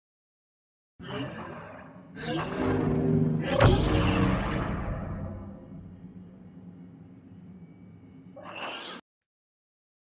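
Lightsabers swing with a loud whoosh and slowly fade.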